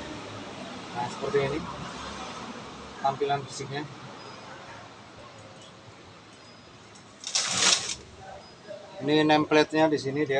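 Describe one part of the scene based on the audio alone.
A man talks calmly nearby.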